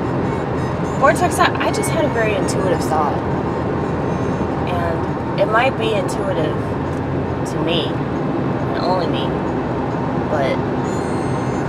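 A young woman sings loudly close by.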